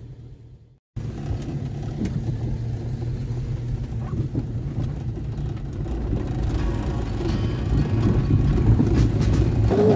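Tyres rumble over cobblestones.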